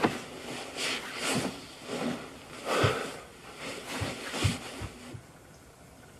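Heavy clothing rustles as a man moves.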